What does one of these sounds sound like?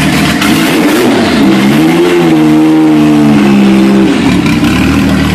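A sports car engine revs up and settles back down.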